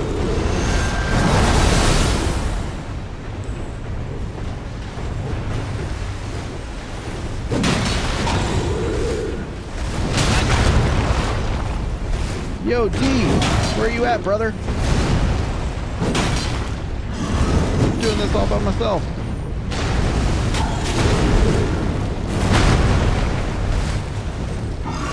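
Heavy blows clash and thud.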